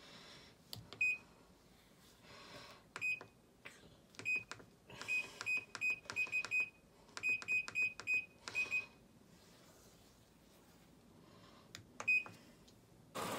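A control panel beeps sharply with each button press.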